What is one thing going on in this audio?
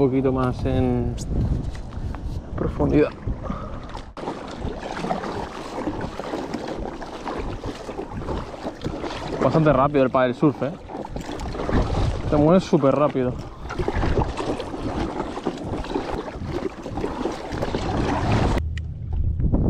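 A paddle splashes and dips into water with steady strokes.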